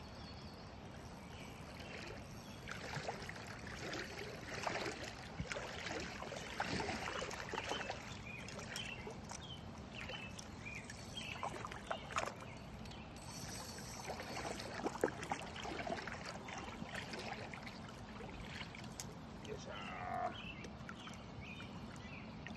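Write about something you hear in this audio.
Shallow lake water laps and sloshes around a wading angler's legs.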